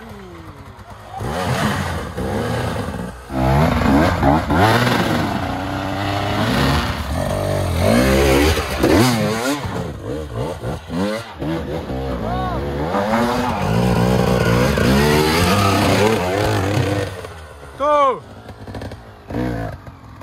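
A dirt bike engine revs hard and roars close by, rising and falling in pitch.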